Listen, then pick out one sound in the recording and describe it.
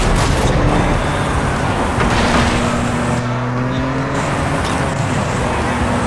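Tyres skid on gravel.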